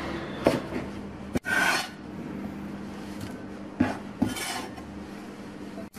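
Vegetables rustle as they drop into a glass bowl.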